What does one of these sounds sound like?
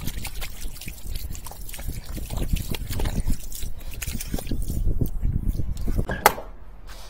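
A jet of water sprays and splashes onto pavement.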